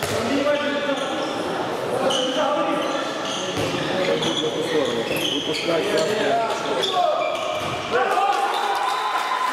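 Young men shout to each other in an echoing hall.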